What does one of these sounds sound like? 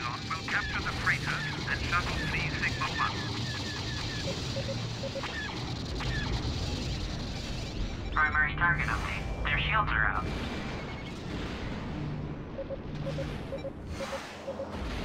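A spacecraft engine hums steadily.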